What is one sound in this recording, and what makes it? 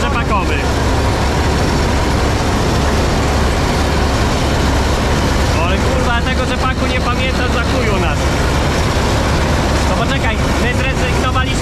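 A combine harvester engine roars steadily close by.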